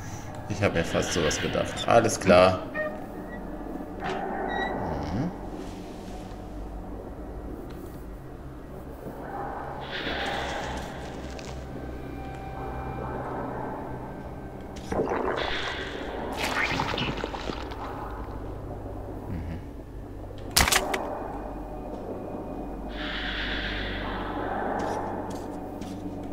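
A man talks calmly and close into a headset microphone.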